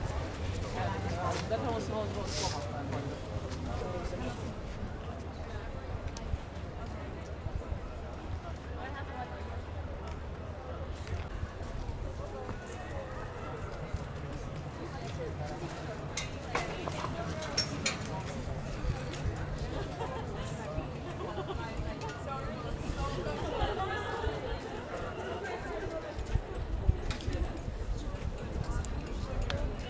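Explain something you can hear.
Passers-by talk in low voices outdoors.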